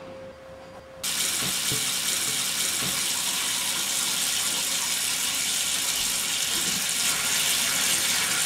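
Water runs steadily from a tap into a basin.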